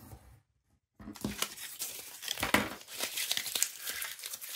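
A strip of paper crinkles as it is peeled away.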